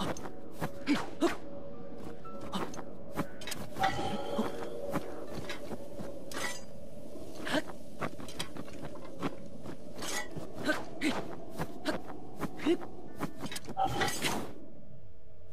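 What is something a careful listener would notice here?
Wind howls steadily in a sandstorm.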